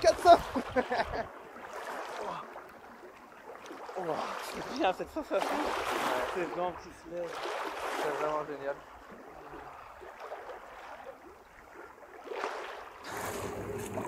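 Distant voices talk faintly across open water.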